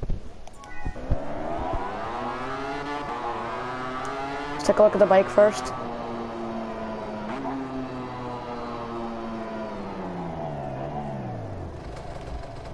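A motorcycle engine drones, rising in pitch and then slowly falling away.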